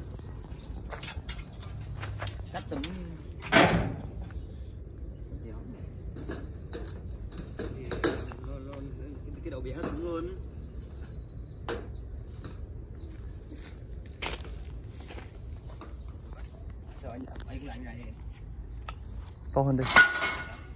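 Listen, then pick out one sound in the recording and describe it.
Metal clanks against a metal ladder.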